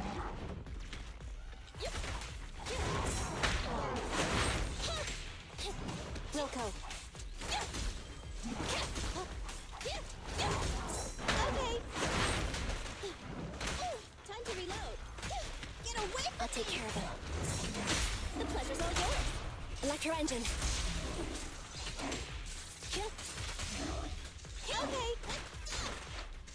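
Blades slash and heavy impacts crash in quick bursts during a fight.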